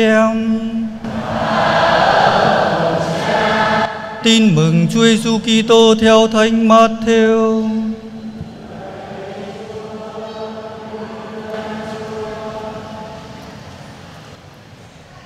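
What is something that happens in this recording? A congregation chants together in response.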